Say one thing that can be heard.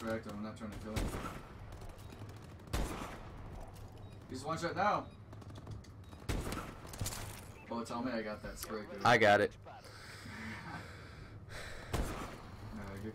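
Gunshots crack sharply from a game.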